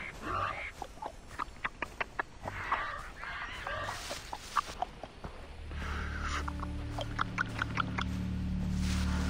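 Footsteps rustle through grass and bushes.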